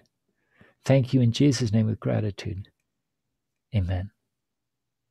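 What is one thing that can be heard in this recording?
An elderly man speaks calmly through an online call, in short bursts.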